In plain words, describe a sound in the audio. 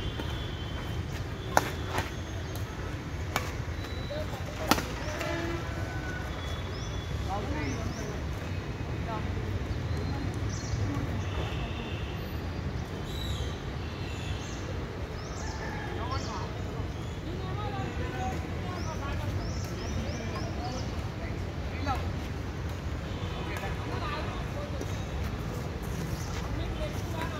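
Birds chirp in the trees.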